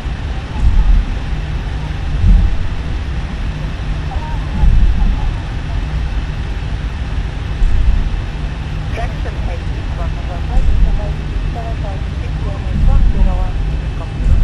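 Aircraft wheels thump rhythmically over joints in the taxiway.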